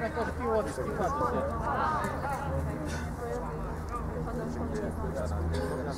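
Young men shout and call out to each other in the distance outdoors.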